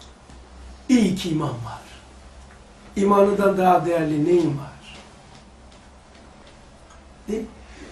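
An elderly man speaks calmly and slowly, close to a microphone, in short phrases with pauses.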